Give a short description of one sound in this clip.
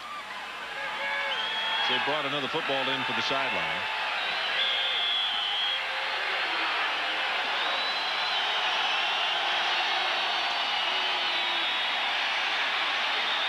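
A large stadium crowd roars and cheers loudly.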